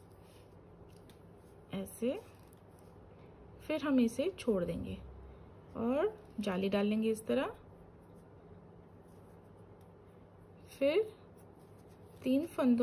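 Knitting needles softly click and scrape against each other.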